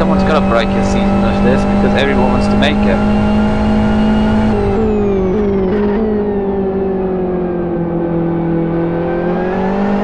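A racing car engine drones loudly, dropping in pitch in steps as it shifts down and then slowly rising again.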